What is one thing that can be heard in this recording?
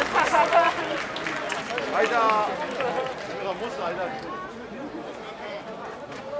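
A man strikes wooden clappers together with sharp cracks.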